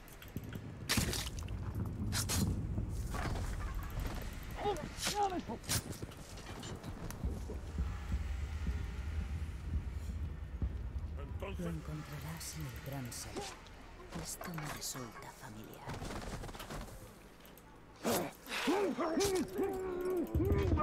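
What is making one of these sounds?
Blades slash and strike flesh in quick fights.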